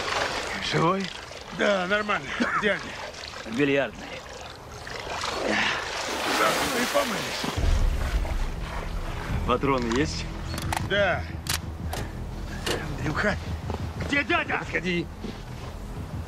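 Two men talk with animation, close by.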